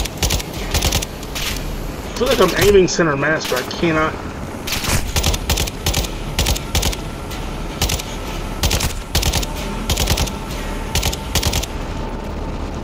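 Rapid gunfire bursts crack close by.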